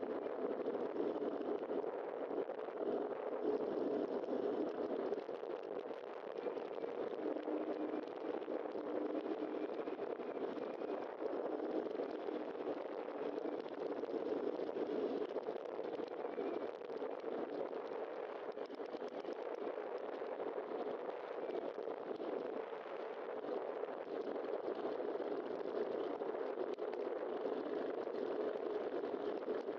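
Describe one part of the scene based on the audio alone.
Wind rushes steadily past, as when riding fast downhill outdoors.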